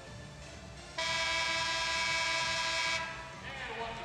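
A loud arena buzzer blares steadily for about two seconds.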